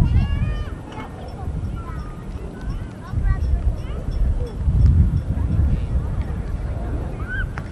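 Young children call out and squeal at a distance.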